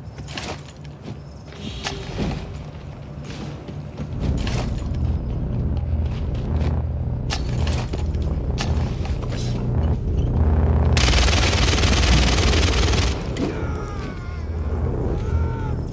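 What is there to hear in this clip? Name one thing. Footsteps thud and scrape on a tiled roof.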